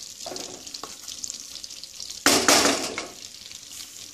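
A thick paste drops into a sizzling pan.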